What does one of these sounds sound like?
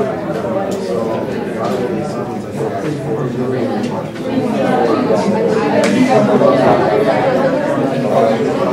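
Many students chatter in a room with a slight echo.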